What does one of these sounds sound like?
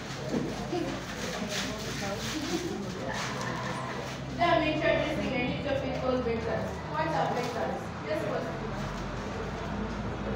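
A young woman speaks into a microphone over loudspeakers in an echoing room.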